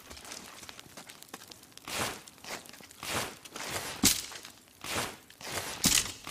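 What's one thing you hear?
A torch flame crackles and flutters.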